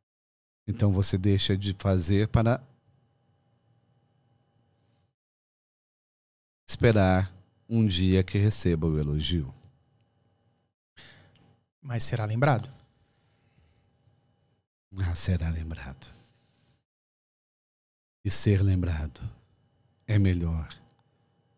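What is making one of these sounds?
A middle-aged man speaks calmly and close into a microphone, in short phrases with pauses.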